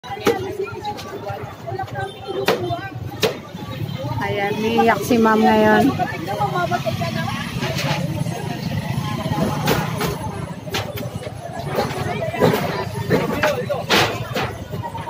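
Workers bang and knock apart a wooden stall.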